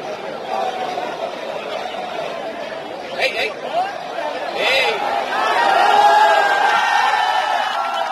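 A large stadium crowd chants and cheers steadily outdoors, louder toward the end.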